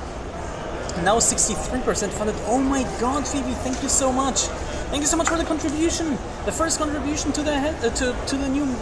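A young woman talks close to the microphone with animation.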